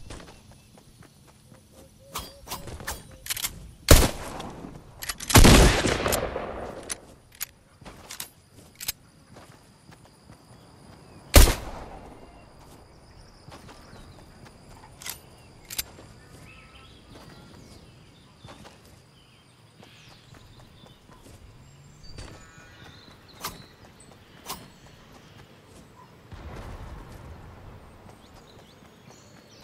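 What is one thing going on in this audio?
Quick footsteps patter as a figure runs over grass and dirt.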